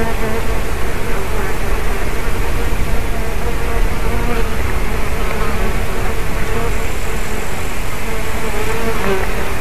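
Wind blows steadily and rumbles against the microphone outdoors.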